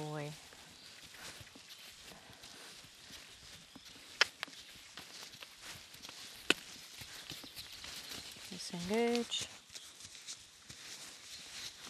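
Hooves thud softly on sand.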